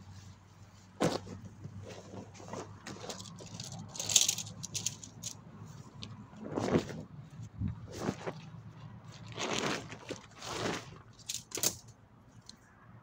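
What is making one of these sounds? Fabric rustles as a man unrolls and spreads a tent on the ground.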